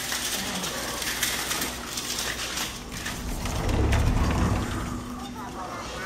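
Fabric window blinds rustle as they are pushed aside.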